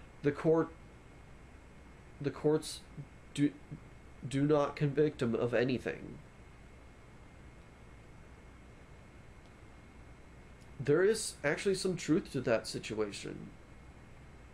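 A young man speaks calmly and close to the microphone, in short bursts with pauses.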